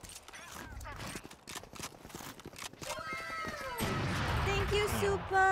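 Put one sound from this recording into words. A young woman talks into a microphone.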